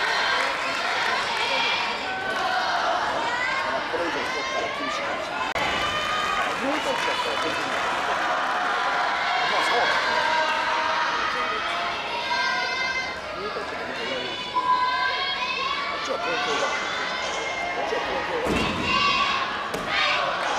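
Many young voices chatter and call out in a large echoing hall.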